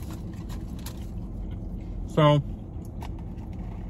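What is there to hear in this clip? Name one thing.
Paper wrapping rustles and crinkles.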